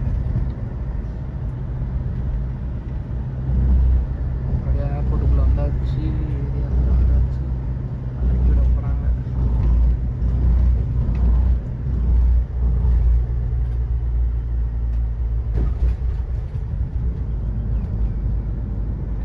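A vehicle engine rumbles low and steady from inside a moving van.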